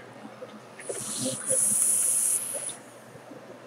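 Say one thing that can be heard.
A vape device hisses softly as a man draws on it.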